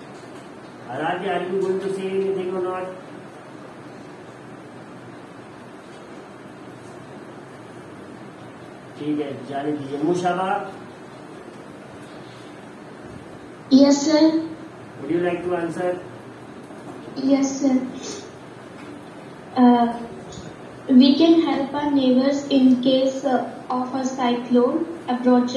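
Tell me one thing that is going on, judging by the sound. A man speaks calmly through a loudspeaker on an online call, in short bursts with pauses.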